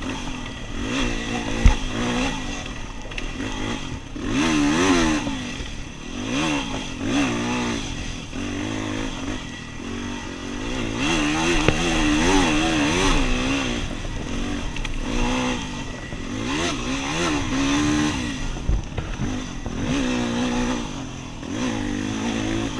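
Tyres crunch over a dirt trail.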